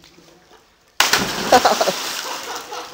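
A body splashes loudly into water.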